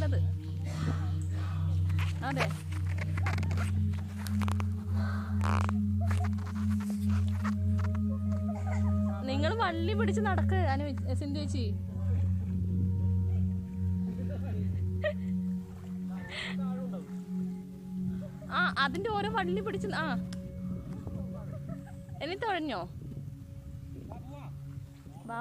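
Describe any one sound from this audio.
Kayak paddles splash softly in the water.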